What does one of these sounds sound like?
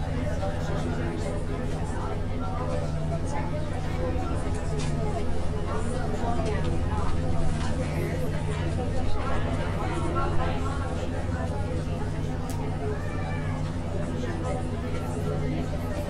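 A bus engine hums steadily at idle.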